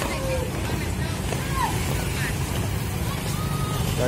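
Motorcycle engines hum close by on a street.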